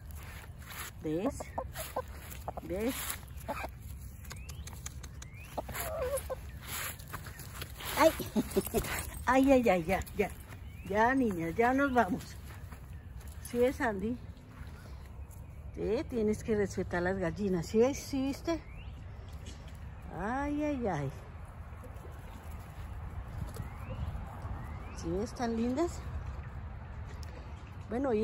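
Hens cluck and croon close by.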